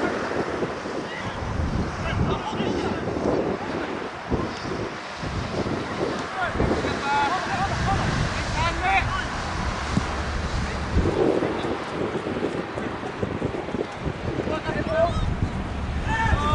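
Wind rumbles steadily across an open field outdoors.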